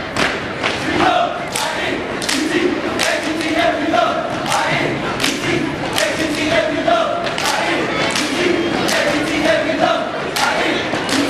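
Young men chant and shout together in unison.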